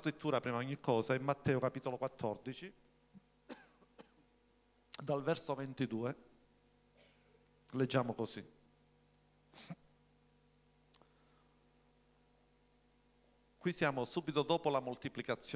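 A middle-aged man speaks calmly into a microphone, with pauses, heard through a loudspeaker.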